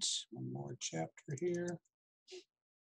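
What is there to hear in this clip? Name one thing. A man speaks briefly and calmly through an online call.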